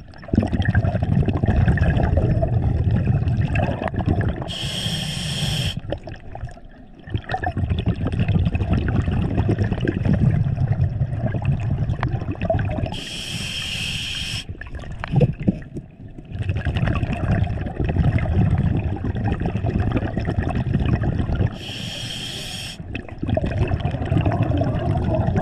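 Exhaled bubbles rumble and gurgle loudly underwater.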